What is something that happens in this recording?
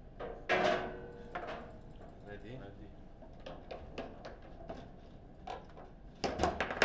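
Foosball rods clatter and spin in quick bursts.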